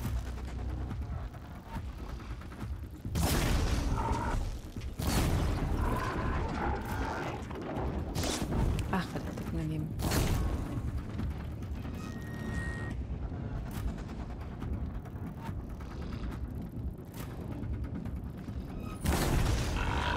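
Arrows whoosh as they are fired.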